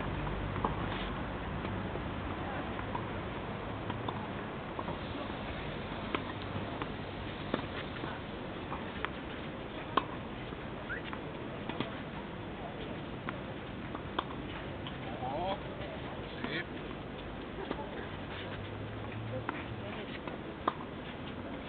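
Tennis balls bounce on a clay court.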